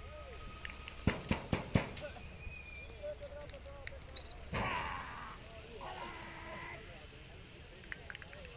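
Pigeons flap their wings as a flock takes off.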